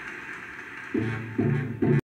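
Music plays from a vinyl record.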